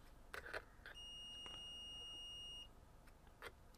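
A multimeter gives a steady beep.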